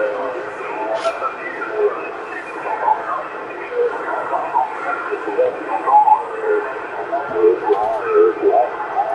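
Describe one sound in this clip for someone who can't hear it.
Static hisses and crackles from a radio receiver.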